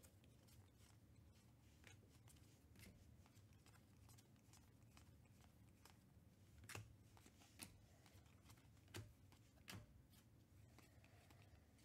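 Trading cards flick and slap softly as they are shuffled by hand.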